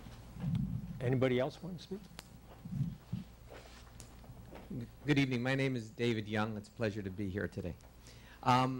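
A middle-aged man speaks calmly into a microphone in a large room.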